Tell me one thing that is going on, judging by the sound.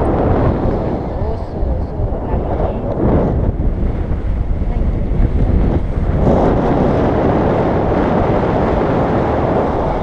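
Wind rushes loudly and steadily past a microphone.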